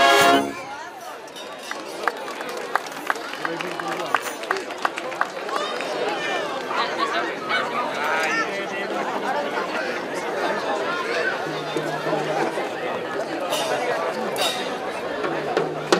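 A brass band plays music outdoors.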